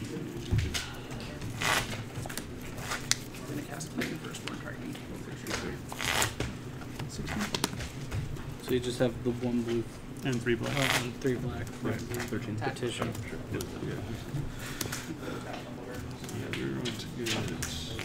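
Playing cards are shuffled and tapped on a table.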